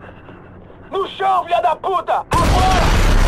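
A man shouts angrily at a distance.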